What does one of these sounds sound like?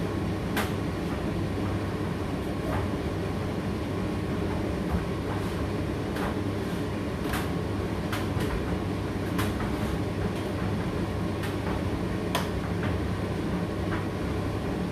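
Clothes click and knock inside a tumble dryer's turning drum.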